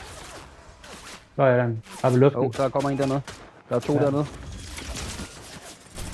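A pickaxe swings and strikes with sharp whooshing hits.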